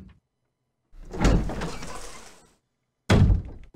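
A heavy door creaks open slowly.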